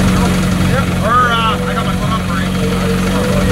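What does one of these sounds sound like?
A man speaks briefly nearby.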